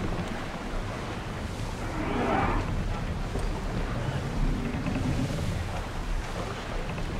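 Strong wind blows steadily.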